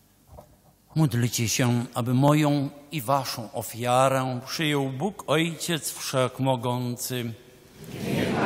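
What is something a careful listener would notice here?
An elderly man chants into a microphone in a large echoing hall.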